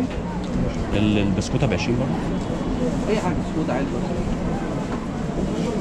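Paper banknotes rustle in a man's hands.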